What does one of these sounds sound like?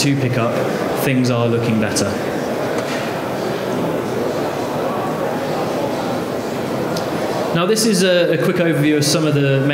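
A young man speaks calmly into a microphone, heard through loudspeakers.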